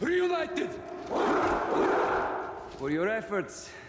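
A crowd of men shouts a cheer together.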